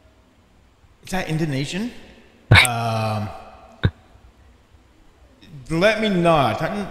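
A man speaks into a microphone, sounding curious.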